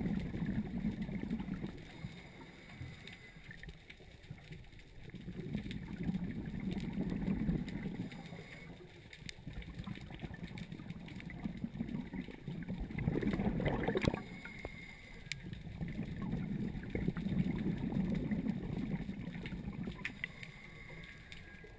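A diver breathes slowly and loudly through a regulator underwater.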